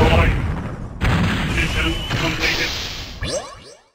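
Heavy metallic impacts and explosions boom.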